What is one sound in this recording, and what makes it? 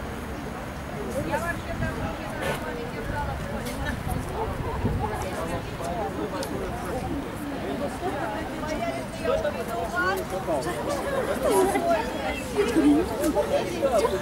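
A woman talks softly to a dog nearby.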